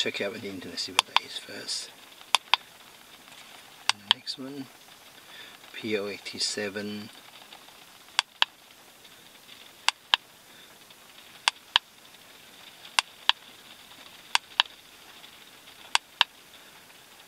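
A small handheld device's buttons click as they are pressed.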